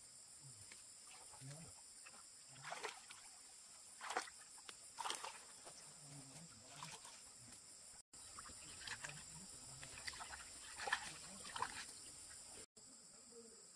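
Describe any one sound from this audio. Water splashes as a man digs with his hands in shallow muddy water.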